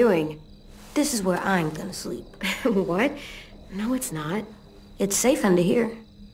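A young boy answers softly.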